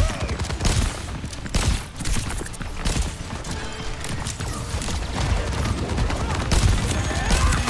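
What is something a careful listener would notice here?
A game weapon fires in rapid bursts.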